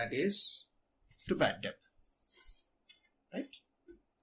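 Paper rustles as sheets are shifted by hand.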